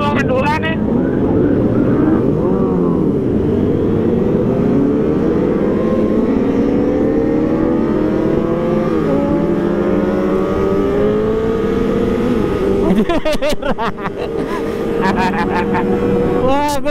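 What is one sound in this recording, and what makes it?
A motorcycle engine drones loudly up close, rising in pitch as it speeds up.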